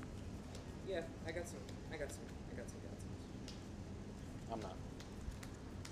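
Playing cards shuffle and riffle in hands.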